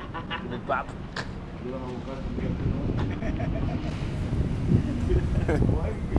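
An older man talks outdoors.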